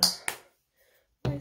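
A plastic bottle cap clicks shut.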